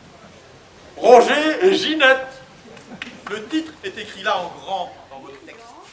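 A man speaks out loudly and theatrically.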